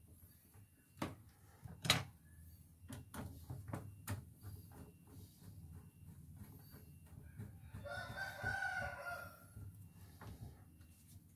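A screwdriver scrapes and clicks against metal parts.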